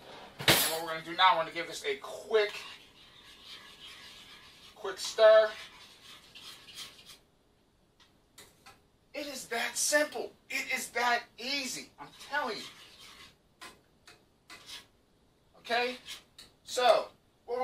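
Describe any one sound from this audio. A spoon clinks against a metal pot.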